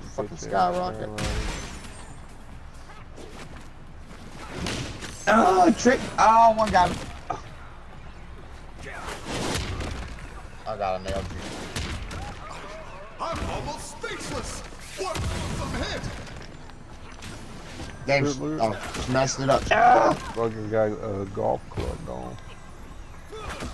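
Cartoonish game sound effects of blows and bursts pop and thud.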